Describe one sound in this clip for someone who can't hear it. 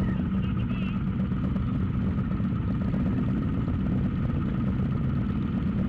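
Motorcycle engines idle with a steady low rumble close by.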